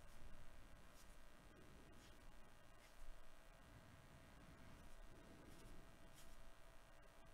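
Stiff trading cards rustle and slide against each other as they are flipped through by hand.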